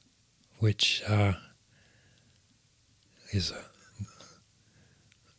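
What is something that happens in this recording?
An elderly man speaks calmly and closely into a microphone.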